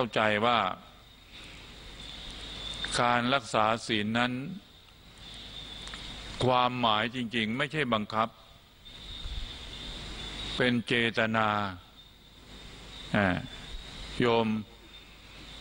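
An elderly man speaks slowly and calmly into a microphone, with long pauses, heard through a loudspeaker.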